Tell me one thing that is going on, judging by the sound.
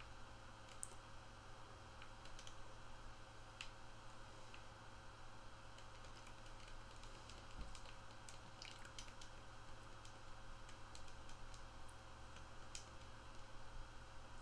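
Small coins clink and jingle as they are picked up.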